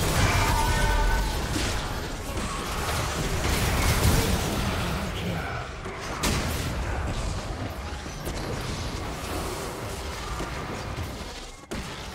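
Spell effects whoosh and crackle as game figures fight.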